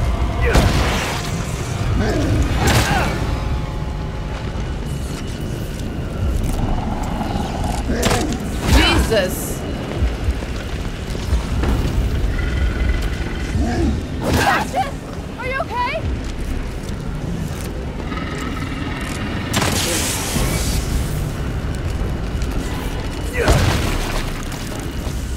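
A fire roars steadily.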